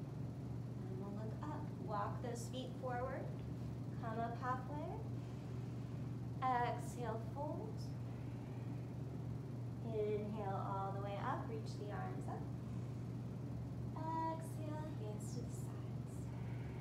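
A young woman speaks calmly, as if giving instructions, close by.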